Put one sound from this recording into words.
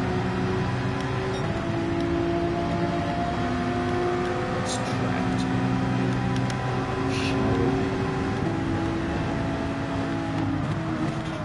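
A racing car engine roars loudly at high revs, shifting up through the gears.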